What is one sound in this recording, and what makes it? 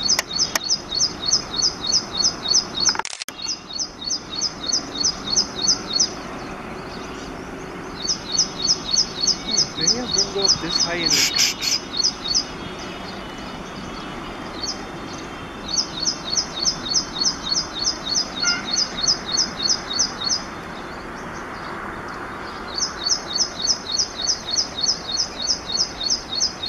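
A small bird sings a fast, repeated series of high chirps in bursts.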